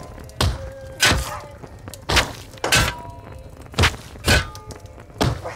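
Heavy blows thud and crash again and again.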